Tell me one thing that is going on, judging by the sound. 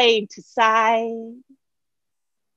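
A woman speaks calmly and slowly into a microphone.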